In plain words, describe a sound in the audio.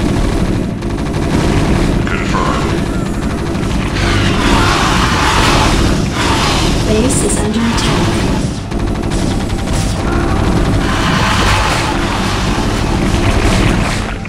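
Explosions boom and crackle in a battle game.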